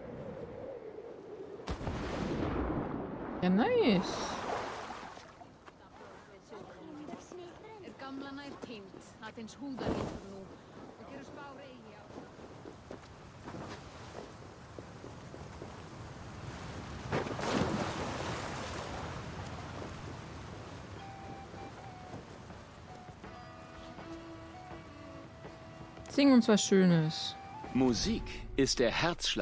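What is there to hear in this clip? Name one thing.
A young woman talks into a close microphone.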